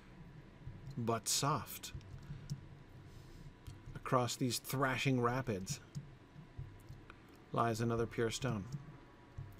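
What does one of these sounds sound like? A middle-aged man talks calmly and closely into a microphone, in short bursts.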